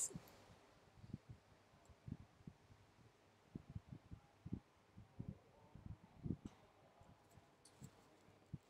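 A stylus taps lightly on a tablet.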